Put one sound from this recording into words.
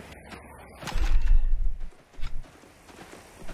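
Gunshots ring out loudly.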